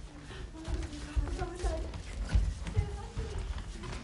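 Feet thump on a wooden stage as a group of children rush on.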